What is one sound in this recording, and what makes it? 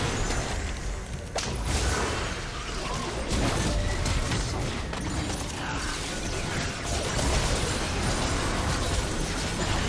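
Blows and impacts thud and clash repeatedly.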